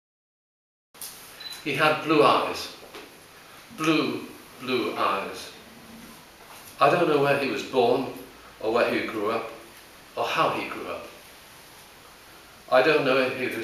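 An elderly man reads out slowly and calmly through a microphone, with pauses.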